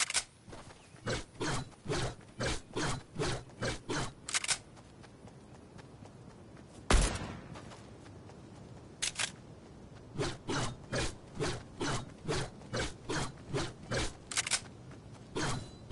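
Footsteps thud quickly and evenly on grass.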